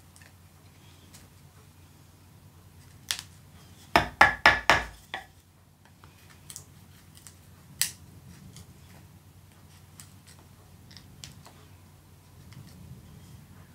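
A knife whittles and scrapes wood in short strokes.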